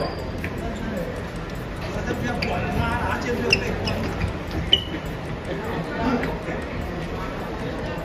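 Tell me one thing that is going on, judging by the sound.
Men and women talk over one another close by in a crowd.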